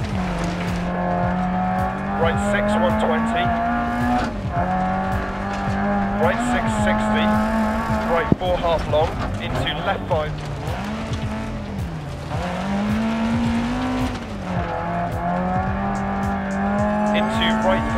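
Tyres crunch and skid on gravel.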